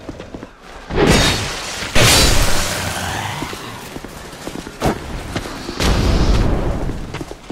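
A sword swings and strikes with heavy impacts.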